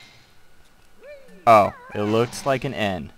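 A cartoonish springy sound effect plays as a game character jumps.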